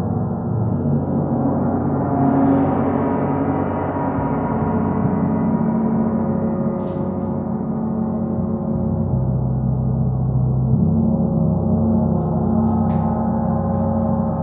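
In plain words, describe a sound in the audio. Large hanging gongs hum and shimmer with a long, swelling resonance.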